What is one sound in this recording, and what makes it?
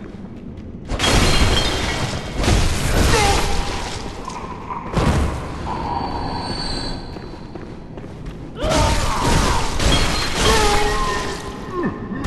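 A blade slashes and thuds into a creature in quick, heavy blows.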